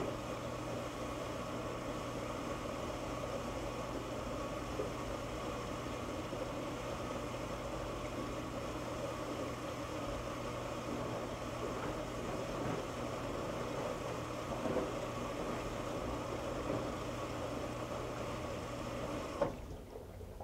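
A washing machine hums and churns steadily.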